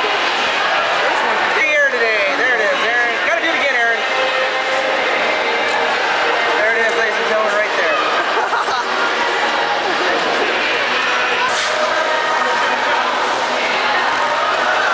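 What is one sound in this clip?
A crowd of skaters chatters and calls out, echoing in a large hall.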